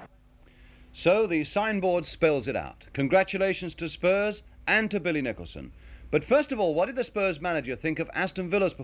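A middle-aged man speaks calmly into a microphone, close by.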